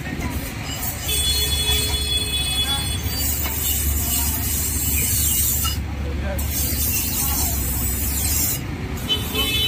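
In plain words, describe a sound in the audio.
A grinding wheel whirs and hisses as a knife is sharpened on it.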